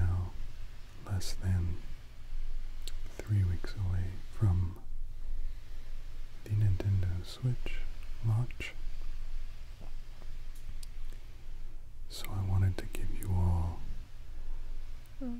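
Hands brush and slide softly over cloth.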